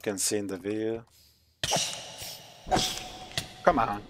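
A small creature is struck and bursts with a soft pop.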